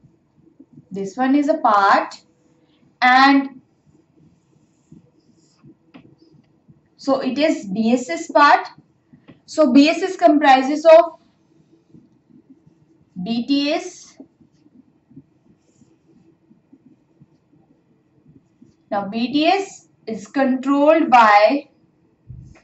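A young woman speaks calmly and clearly, close by, as if explaining.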